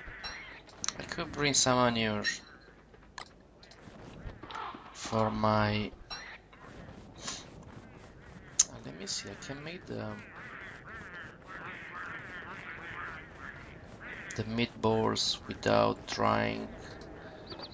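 A man talks casually, close into a headset microphone.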